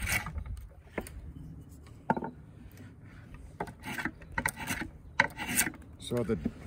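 A piece of wood knocks and clatters against a wooden frame.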